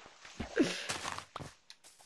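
Dirt crunches as it is dug with a shovel.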